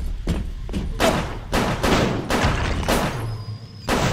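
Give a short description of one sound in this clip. A pistol fires several loud gunshots.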